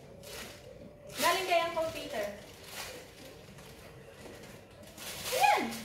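A plastic bag rustles and crinkles.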